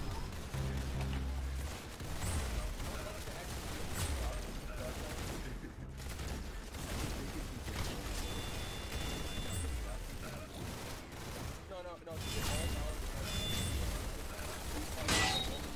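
Game rifle shots fire in quick bursts.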